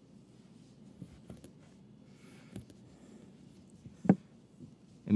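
Thin plastic sheeting rustles and crinkles faintly under a hand.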